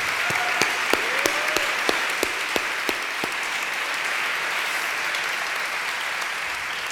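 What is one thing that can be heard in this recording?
A crowd applauds loudly in a large room.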